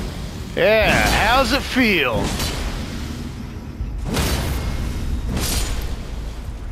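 Heavy metal weapons clash and strike with loud blows.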